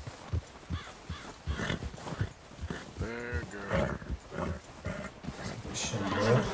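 A horse gallops, hooves thudding in deep snow.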